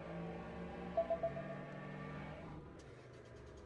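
A car engine revs and hums steadily.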